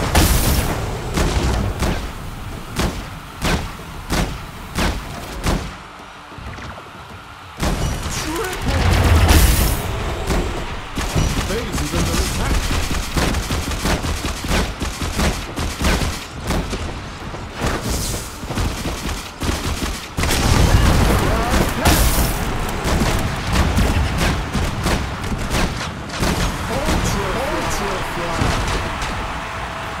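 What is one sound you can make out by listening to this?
Video game gunfire crackles in rapid bursts.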